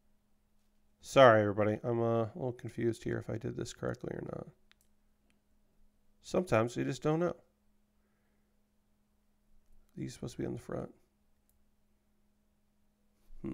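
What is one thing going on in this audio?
Small plastic parts click as they are pressed together.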